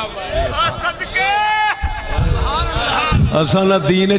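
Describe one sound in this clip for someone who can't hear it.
A crowd of men cheers and calls out loudly.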